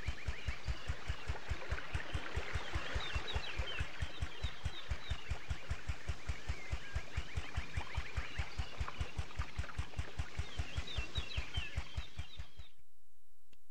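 Small footsteps patter quickly along the ground.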